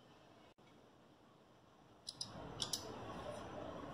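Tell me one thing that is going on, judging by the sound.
Small thread snips click as thread is cut.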